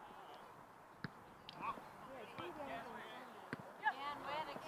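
A soccer ball is kicked with dull thumps.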